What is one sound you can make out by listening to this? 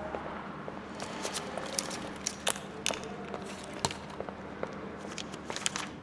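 Footsteps walk away down a corridor.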